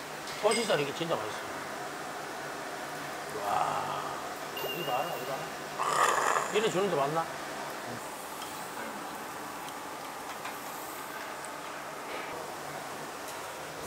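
Meat sizzles on a grill.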